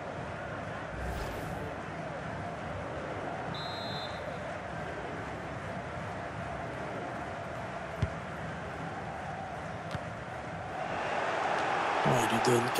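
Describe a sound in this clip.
A large crowd roars steadily, swelling louder toward the end.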